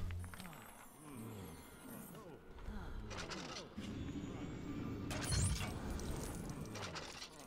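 A magic spell swirls and hums.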